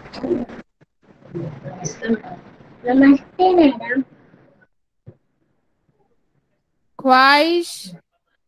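A young girl recites with animation, heard over an online call.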